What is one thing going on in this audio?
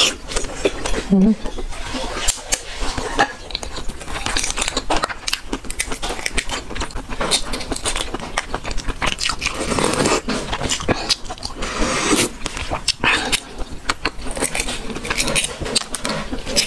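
A young woman chews and slurps wetly, close up.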